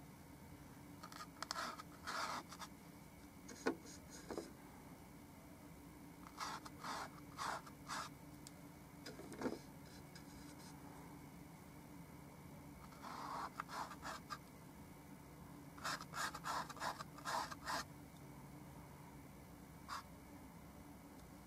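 A paintbrush dabs and brushes softly against canvas.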